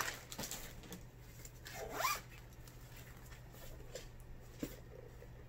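A soft fabric sleeve rustles and scuffs as it is handled close by.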